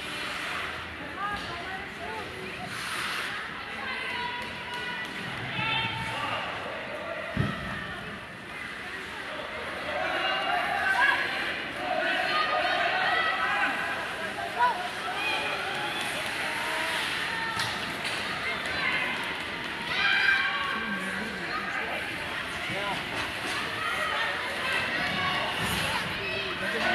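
Hockey skates scrape across the ice.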